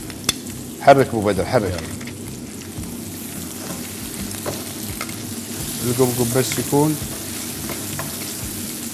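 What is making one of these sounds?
Crab shells knock and clatter against a frying pan.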